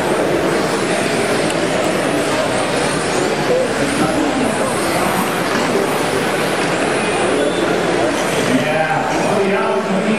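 Small electric model cars whine as they race around a track.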